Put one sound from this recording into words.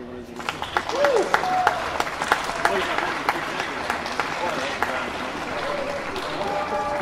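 An audience claps and cheers loudly.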